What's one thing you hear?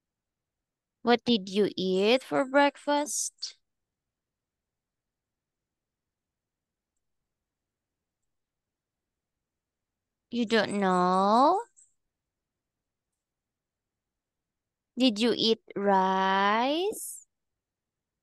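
A young woman speaks clearly over an online call, in short bursts.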